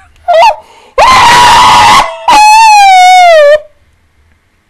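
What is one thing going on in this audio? A young woman shrieks loudly into a microphone.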